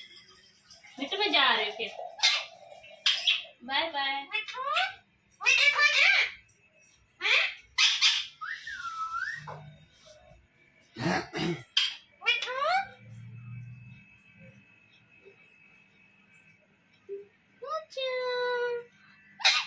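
A parrot squawks and chatters loudly up close.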